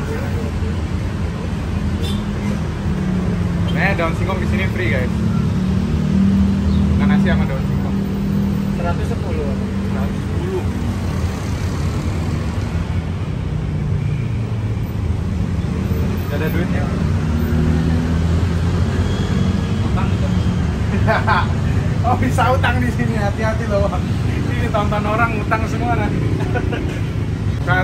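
A young man speaks with animation into a handheld microphone.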